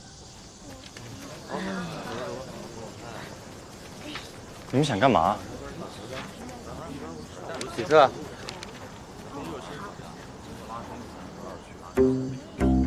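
A group of teenagers murmur and chatter.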